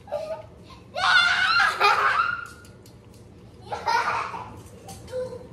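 A young boy shouts excitedly nearby.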